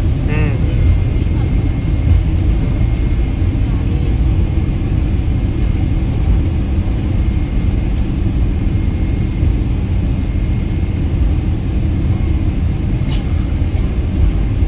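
A jet engine roars steadily close by, heard from inside the cabin.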